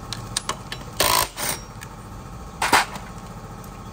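A cordless impact wrench whirs and rattles in short bursts.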